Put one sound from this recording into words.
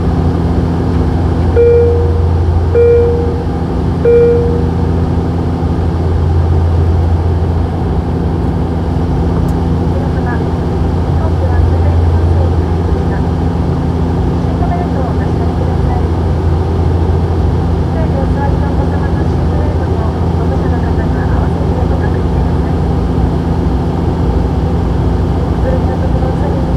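A jet engine drones steadily inside an airplane cabin.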